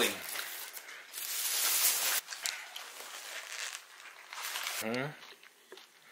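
A paper bag crinkles and rustles.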